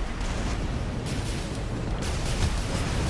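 A jet engine roars and thrusts.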